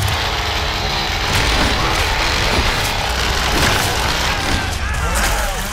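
A man shouts in panic nearby.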